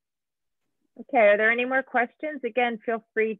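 A woman speaks steadily through an online call.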